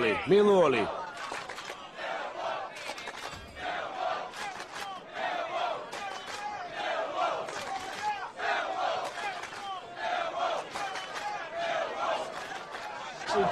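A group of men sing and chant together in a crowded room.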